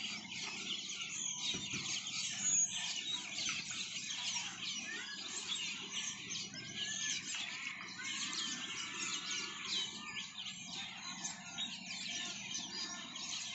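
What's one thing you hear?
Otters chirp and squeak in high, rapid calls.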